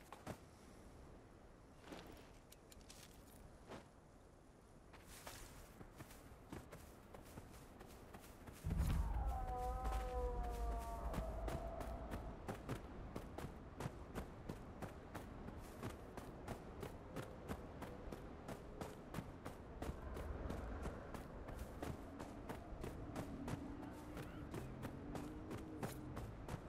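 Footsteps crunch quickly on sand and dry ground.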